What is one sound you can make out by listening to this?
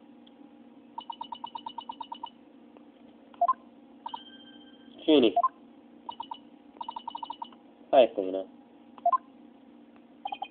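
Rapid electronic beeps tick in quick bursts.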